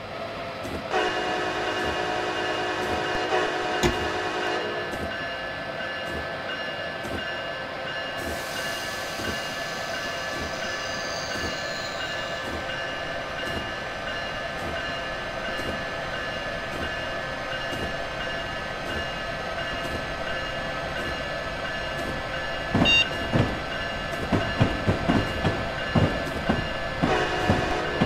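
An electric train motor hums steadily.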